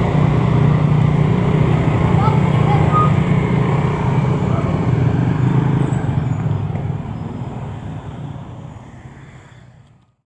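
Car engines idle and hum in slow traffic, fading out toward the end.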